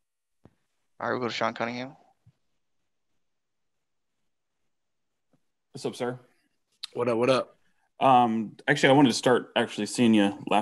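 A young man speaks calmly into a close microphone, with pauses.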